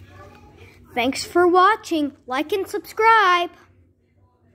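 A young boy speaks close by, with animation.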